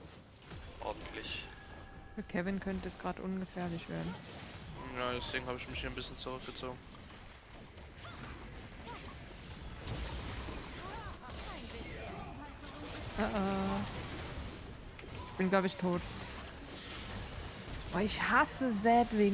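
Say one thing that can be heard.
Spell blasts and hits crackle in a fast battle.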